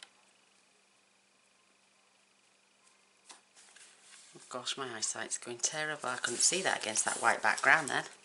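A card slides and taps on a work mat.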